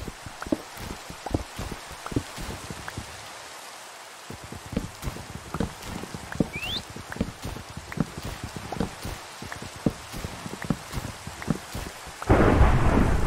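An axe chops at wood with quick, repeated knocks.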